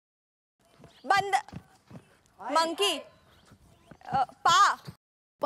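A young woman speaks loudly with animation, close by.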